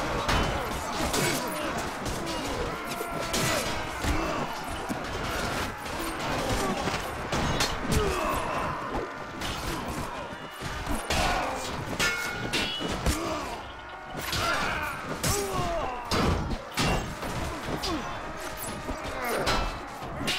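Weapons clash and knock against shields.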